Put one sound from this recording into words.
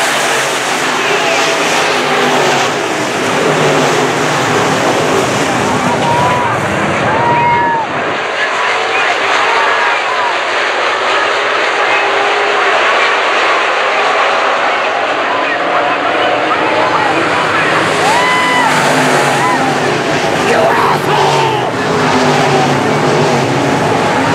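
A crowd of spectators murmurs and calls out nearby.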